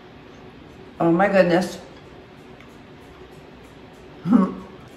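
A woman speaks briefly and with enjoyment, close by.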